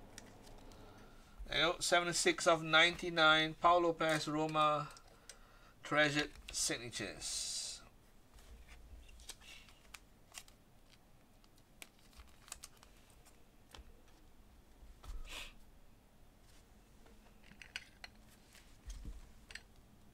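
Plastic card cases click and tap as hands handle them.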